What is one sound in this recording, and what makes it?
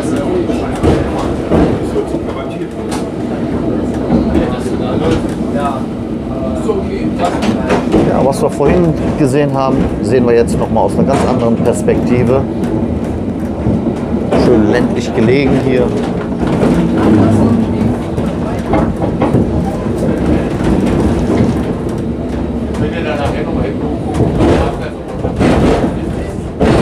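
A man talks nearby inside the tram.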